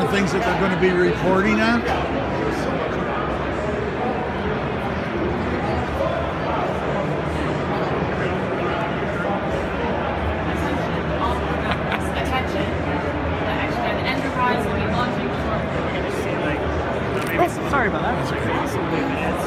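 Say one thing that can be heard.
Nearby men and women talk over the crowd.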